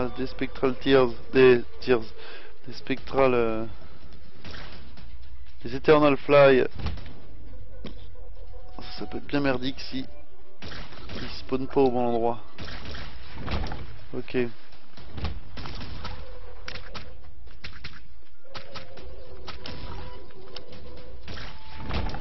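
Video game sound effects pop and splatter as shots hit enemies.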